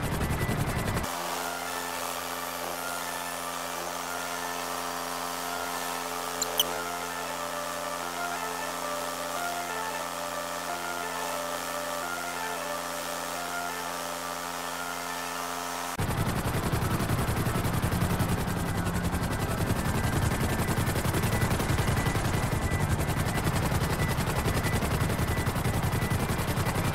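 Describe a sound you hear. A helicopter's rotor whirs and its engine hums steadily overhead.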